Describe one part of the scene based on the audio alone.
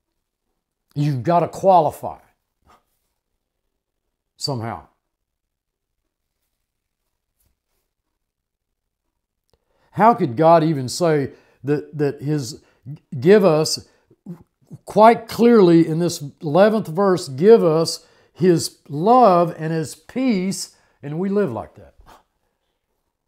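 An elderly man speaks calmly and earnestly, close by, with pauses.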